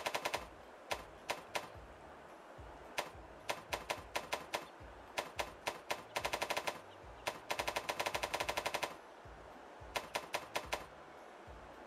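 Menu cursor ticks click quickly in bursts.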